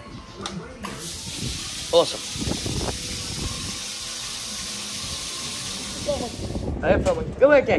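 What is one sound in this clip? A pump sprays water onto concrete with a steady hiss.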